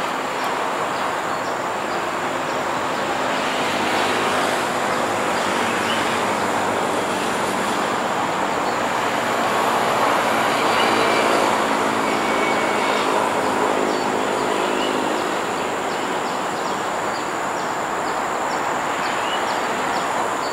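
An electric train rumbles slowly along the tracks into a station.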